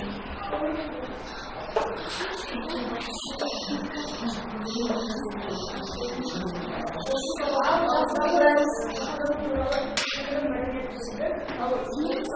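A boy speaks aloud in an echoing room.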